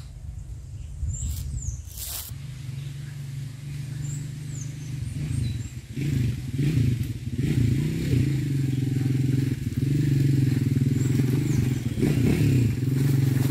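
A man speaks calmly close by, outdoors.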